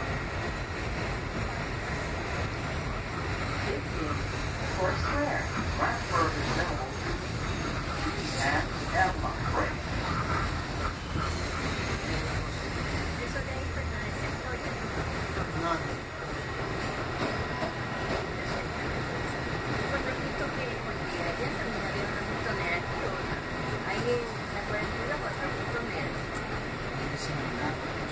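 A train rumbles steadily along an elevated track.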